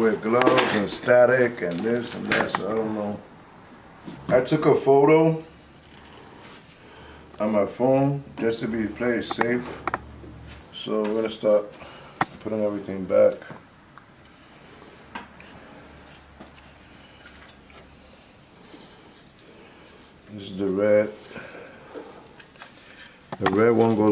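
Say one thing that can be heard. A middle-aged man talks calmly close by, in short bursts.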